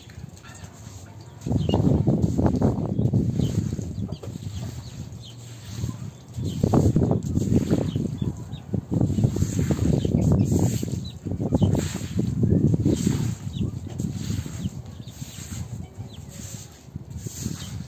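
A broom scrubs back and forth over a wet floor.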